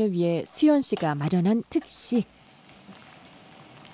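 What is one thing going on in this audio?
A spoon stirs a simmering pot of stew.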